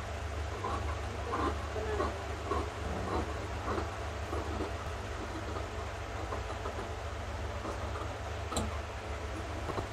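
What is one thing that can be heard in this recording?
Scissors snip and slice through paper.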